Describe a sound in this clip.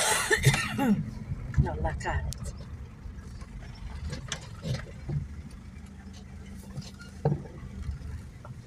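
A car's interior rattles and knocks over a rough road.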